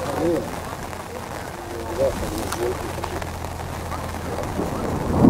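Young male players shout to each other across an open field.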